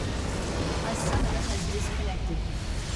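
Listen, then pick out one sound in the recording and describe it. A large explosion booms as a structure is destroyed.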